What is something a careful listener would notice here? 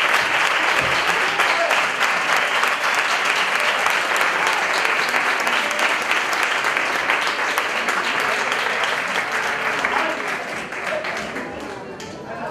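An audience claps loudly in an echoing hall, and the applause slowly fades.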